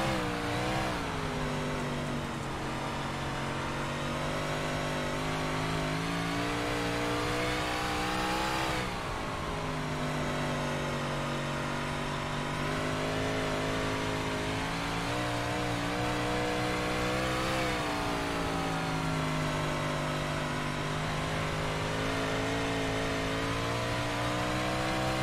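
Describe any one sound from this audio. A racing car engine roars steadily, its pitch rising and falling as it speeds up and slows for the corners.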